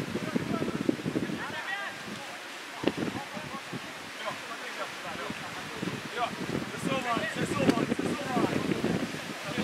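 Young men shout to each other in the distance across an open football pitch.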